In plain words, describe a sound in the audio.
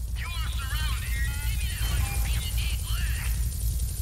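A character splashes into water.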